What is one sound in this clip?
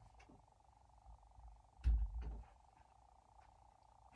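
Footsteps thud on a carpeted floor.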